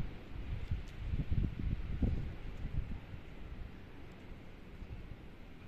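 Wind gusts and rumbles against the microphone outdoors.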